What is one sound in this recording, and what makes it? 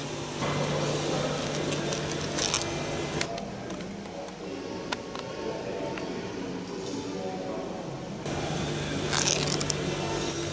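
Small metal screws rattle in a plastic tub.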